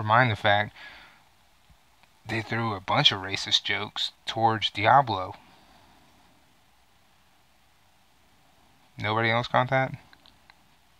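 A man talks calmly and close to a microphone, in short bursts.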